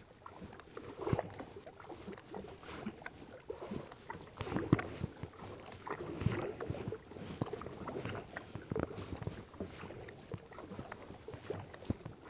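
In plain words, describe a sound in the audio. A paddle splashes and drips in calm water with each stroke.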